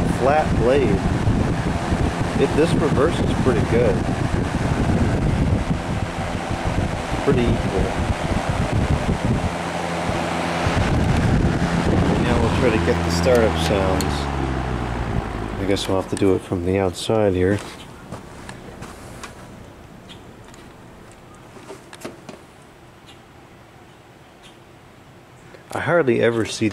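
An electric fan hums and whirs steadily.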